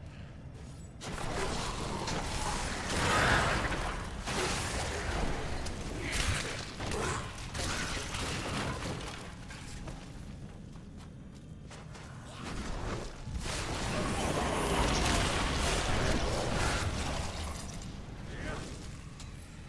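Fiery spells burst and crackle amid battle clashes.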